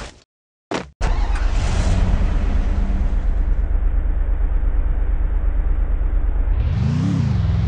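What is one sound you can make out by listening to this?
A vehicle engine starts and idles with a low rumble.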